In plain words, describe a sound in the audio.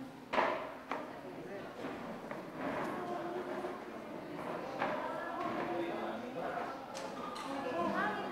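A crowd of men and women chatter nearby in an echoing hall.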